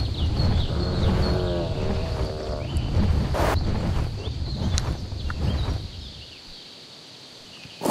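Large wings flap.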